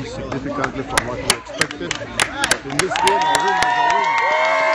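People clap their hands.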